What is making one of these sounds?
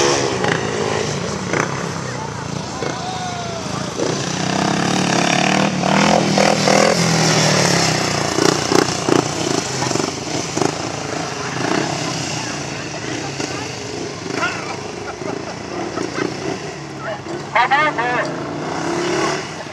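Motorcycle engines roar and whine in the distance.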